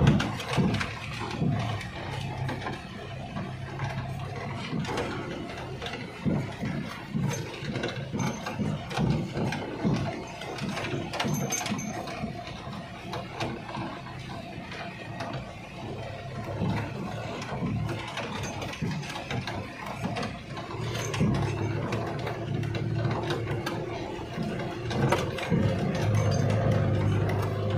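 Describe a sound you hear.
A vehicle rattles and bumps over a rough dirt track.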